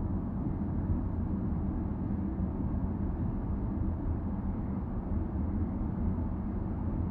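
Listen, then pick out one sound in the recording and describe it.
Tyres roll on smooth pavement with a low rumble.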